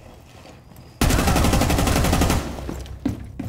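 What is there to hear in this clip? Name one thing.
Rapid gunfire rattles in a loud burst.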